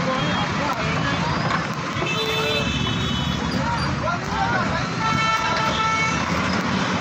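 A crowd of men and women talks and calls out outdoors.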